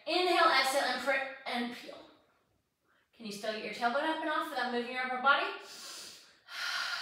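A young woman speaks calmly and close by, as if instructing.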